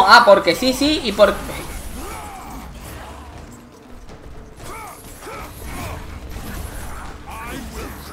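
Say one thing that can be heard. Metal blades whoosh and strike in a violent fight.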